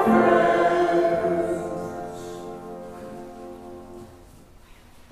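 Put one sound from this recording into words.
A group of people sings a hymn in an echoing hall, then the singing fades away.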